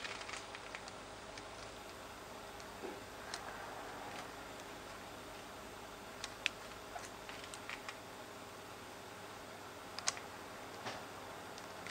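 Fingers tap laptop keyboard keys.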